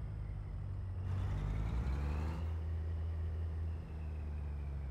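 A truck's engine revs up briefly and then settles back down.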